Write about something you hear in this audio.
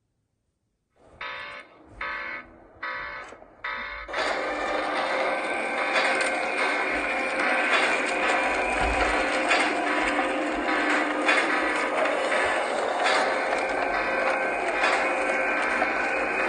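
Video game music plays loudly.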